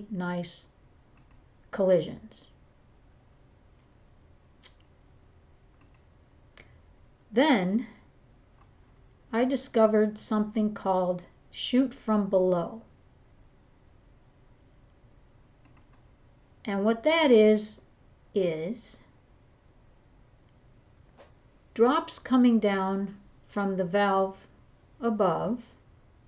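An elderly woman speaks calmly into a microphone, with pauses.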